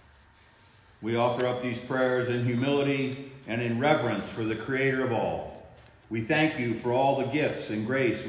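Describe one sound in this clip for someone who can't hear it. A middle-aged man speaks calmly and slowly.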